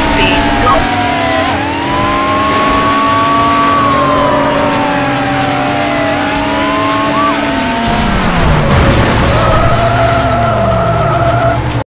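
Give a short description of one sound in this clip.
A sports car engine roars and shifts pitch as it accelerates.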